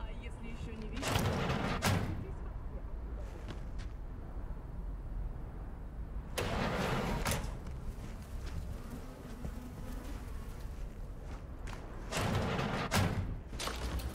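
A heavy sliding door opens with a mechanical whoosh.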